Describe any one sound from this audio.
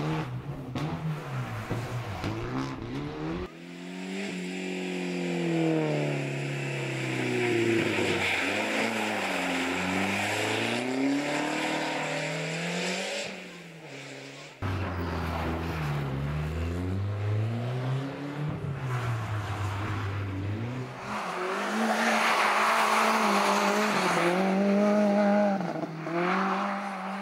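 A rally car engine revs hard and roars past, shifting gears.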